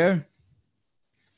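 A man speaks briefly into a microphone, then falls silent.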